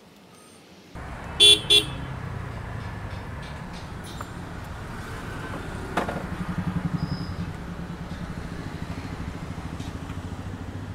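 A motorcycle engine starts up and idles steadily nearby.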